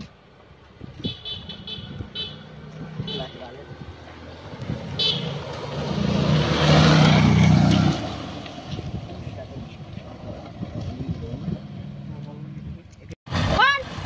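Motorcycle engines approach, roar past close by and fade into the distance.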